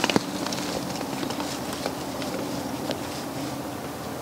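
Footsteps crunch on dry ground nearby.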